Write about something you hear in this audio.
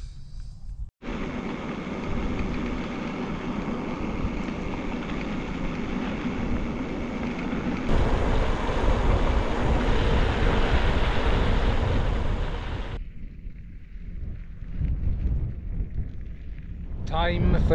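Bicycle tyres crunch and rattle over a gravel road.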